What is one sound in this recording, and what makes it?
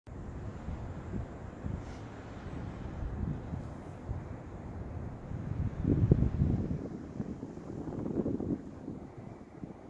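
Wind gusts and rumbles outdoors, with stronger gusts now and then.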